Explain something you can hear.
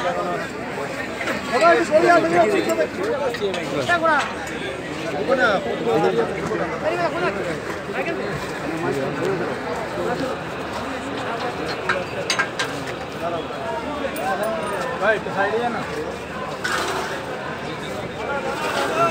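A crowd of men talk over one another close by, outdoors.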